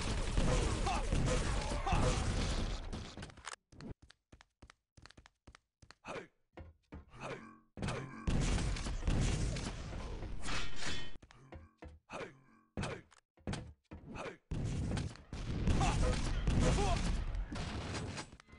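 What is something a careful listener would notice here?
Rockets explode with loud booming blasts.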